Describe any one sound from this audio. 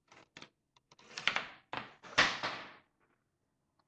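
A plastic toy rattles and knocks against a table.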